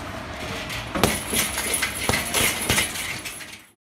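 Boxing gloves thump against a heavy punching bag.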